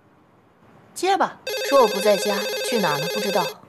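A middle-aged woman speaks, close by.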